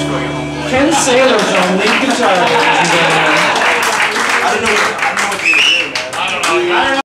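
A small live band plays upbeat music in a room.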